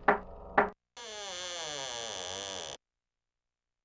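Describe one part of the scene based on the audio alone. A door creaks slowly open.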